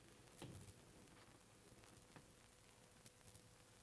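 A door lock clicks and rattles faintly.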